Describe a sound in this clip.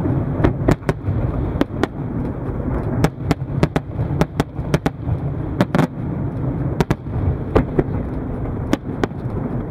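Fireworks burst with sharp bangs and crackles overhead.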